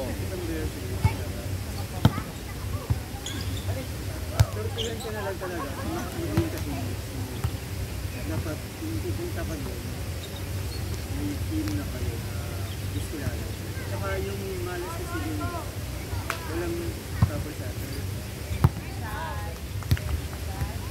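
A volleyball is struck with sharp slaps now and then.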